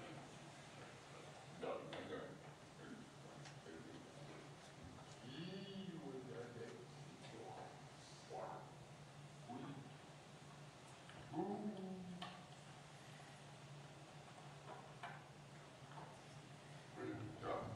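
A man speaks calmly through a microphone and loudspeakers in a large echoing hall.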